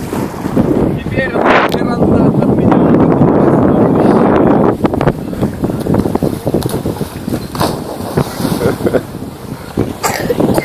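Small waves lap on the shore.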